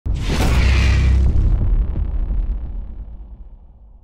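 A loud explosion booms and slowly rumbles away.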